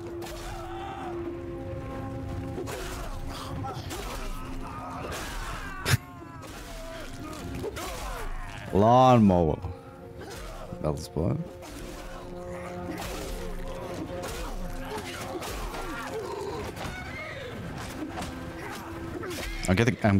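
A crowd of men shouts and yells in battle.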